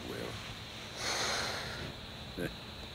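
A young man exhales cigarette smoke.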